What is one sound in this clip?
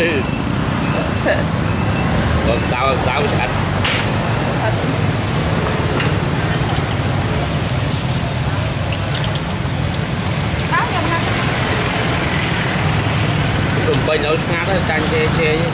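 Oil sizzles and bubbles steadily in a frying pot.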